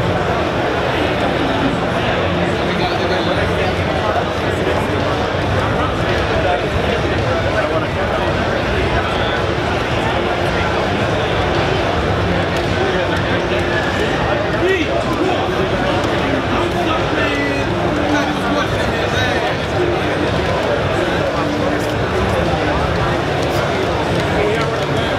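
Video game music plays loudly through loudspeakers.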